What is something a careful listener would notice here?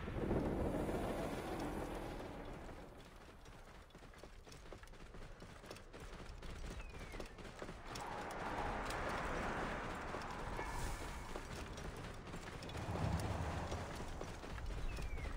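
Hooves thud quickly on sand at a gallop.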